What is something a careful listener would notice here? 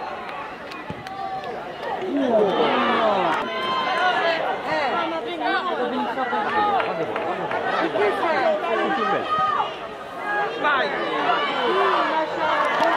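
Young men on a football pitch shout to each other.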